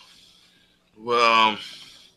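An older man speaks over an online call.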